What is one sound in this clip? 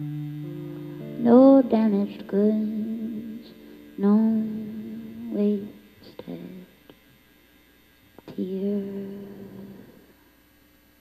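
A young woman sings softly into a microphone.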